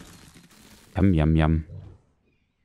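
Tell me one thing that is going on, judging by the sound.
A large creature lets out a deep, rumbling roar.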